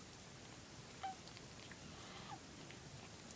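Newborn kittens squeak faintly.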